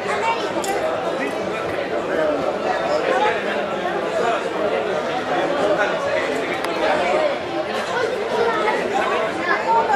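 Elderly men talk and chat close by.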